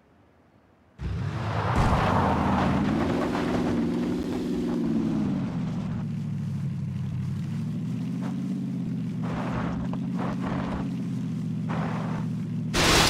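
A car engine starts and revs up and down.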